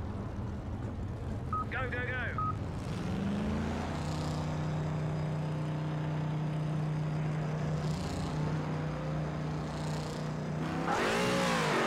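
A racing car engine hums steadily at low speed.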